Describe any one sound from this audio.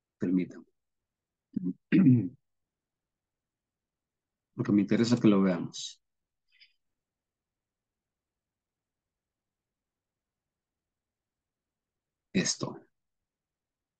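A man speaks calmly in short phrases through an online call microphone, with long pauses.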